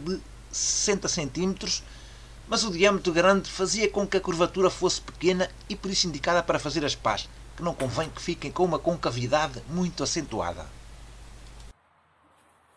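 An adult man talks calmly close by.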